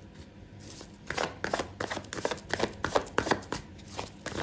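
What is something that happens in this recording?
Playing cards are shuffled by hand with quick, crisp riffling.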